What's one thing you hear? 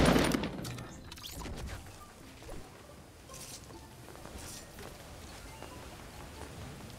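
Footsteps thud quickly across a wooden floor.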